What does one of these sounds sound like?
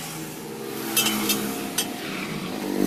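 Metal tools clank against a wheel rim.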